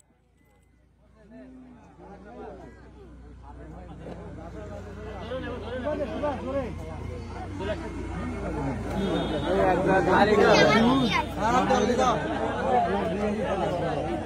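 A crowd of women and children chatters and cheers outdoors, growing louder.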